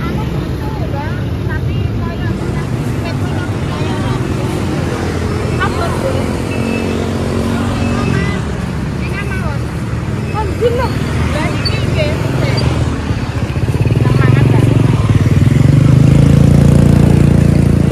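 Women talk casually nearby.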